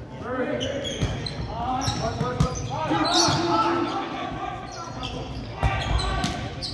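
A volleyball is struck with a smack.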